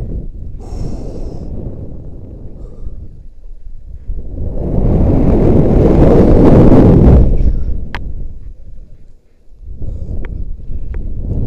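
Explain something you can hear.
Wind buffets loudly outdoors, swelling into a rushing roar and then easing off.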